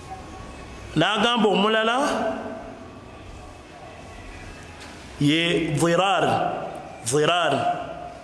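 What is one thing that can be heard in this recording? A man chants melodically into a close microphone, in bursts with pauses.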